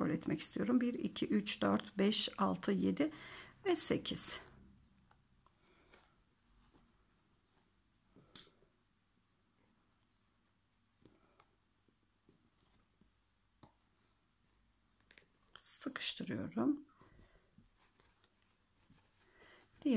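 Crocheted yarn fabric rustles softly as hands handle and stitch it.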